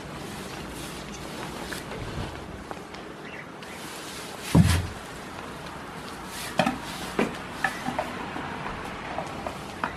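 A goat munches on hay close by.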